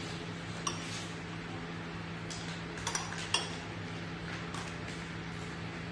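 A knife scrapes and taps against a metal tin.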